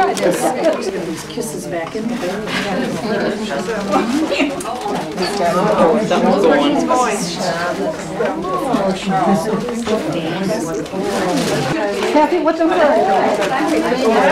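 Several elderly women chat and talk over one another nearby.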